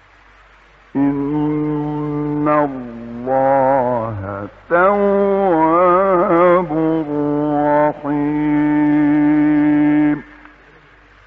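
A man chants slowly in a melodic voice, holding long notes.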